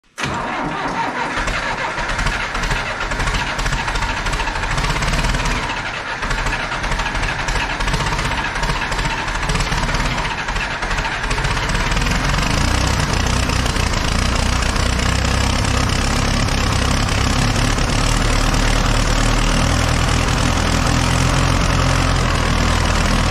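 A small old diesel tractor engine sputters unevenly, then settles into a loud, steady rumbling idle.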